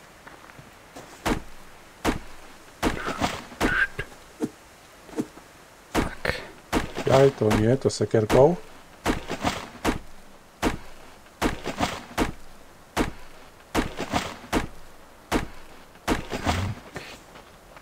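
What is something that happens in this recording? An axe chops into wood with repeated knocks.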